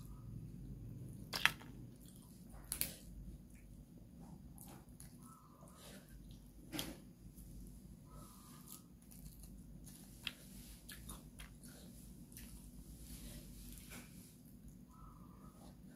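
A woman chews and slurps food close to a microphone.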